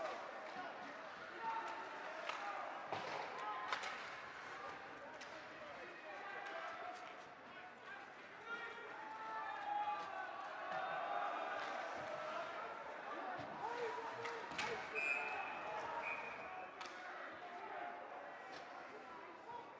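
A crowd of spectators murmurs and calls out in a large echoing rink.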